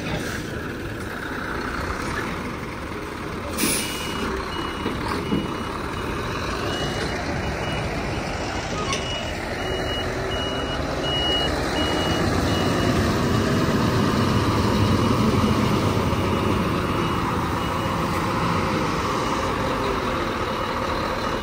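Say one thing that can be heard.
Truck tyres hiss on a wet road.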